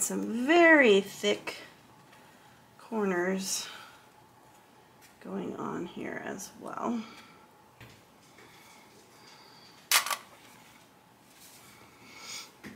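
Fabric rustles softly as hands fold and handle it.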